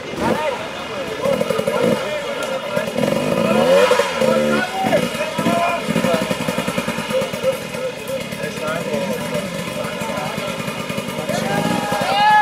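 A motorcycle engine revs hard in bursts, close by.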